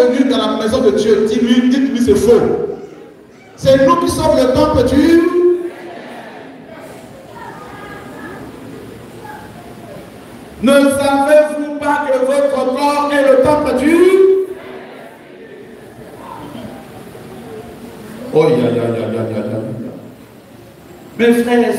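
A large crowd sings together loudly in an echoing hall, in bursts with quieter pauses between.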